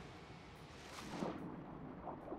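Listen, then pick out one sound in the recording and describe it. Something splashes into water.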